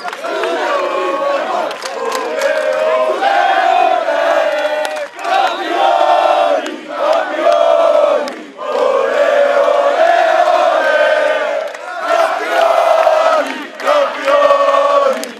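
A large crowd of young men chants and sings loudly in unison.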